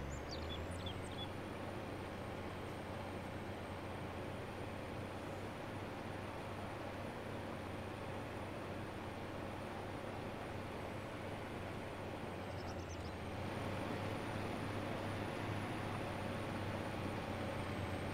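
A cultivator scrapes through soil.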